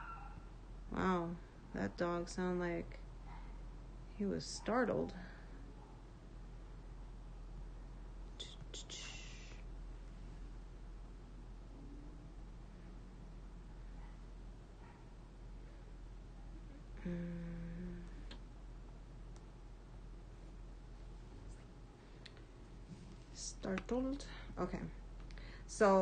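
A young woman speaks casually and close by, in short bursts with pauses.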